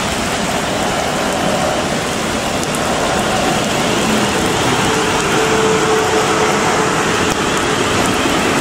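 Train brakes squeal faintly as the train slows.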